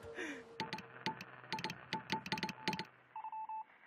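A telegraph key clicks as it taps out code.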